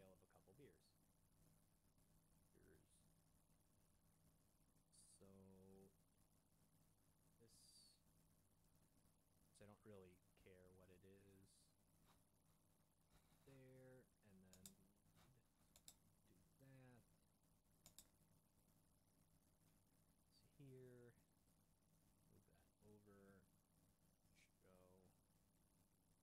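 A man talks calmly into a close microphone, in short phrases with pauses.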